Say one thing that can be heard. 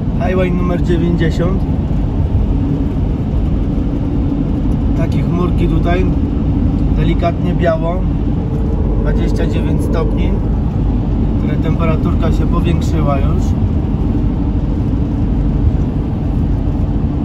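A vehicle's engine and tyres rumble steadily on a road.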